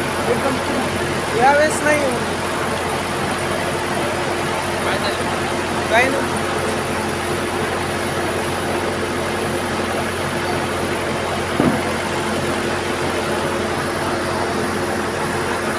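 A tractor engine idles with a steady low rumble.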